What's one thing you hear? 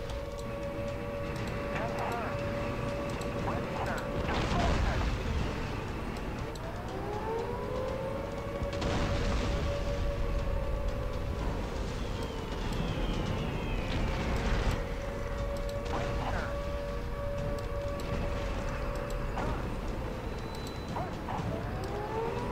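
Tank engines rumble steadily.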